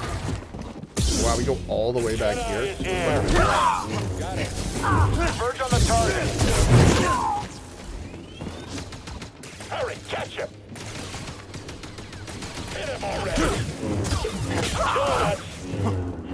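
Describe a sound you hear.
A lightsaber hums and clashes loudly.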